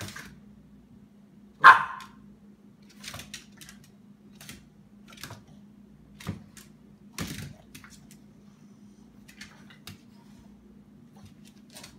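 Dog paws scuffle and skid on a wooden floor.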